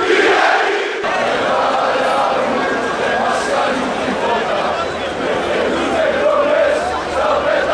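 A large crowd roars and cheers outdoors.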